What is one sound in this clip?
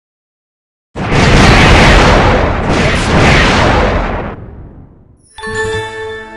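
A second explosion booms and crackles.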